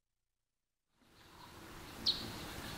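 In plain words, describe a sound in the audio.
Wind rustles softly through leafy trees.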